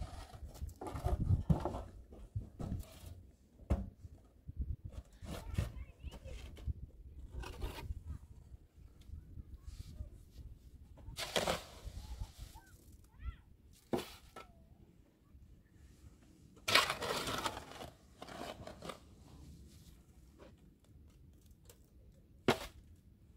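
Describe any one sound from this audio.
A shovel scrapes and clinks in wet mortar.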